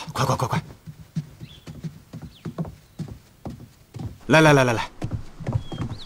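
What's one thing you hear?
Footsteps hurry across a wooden floor.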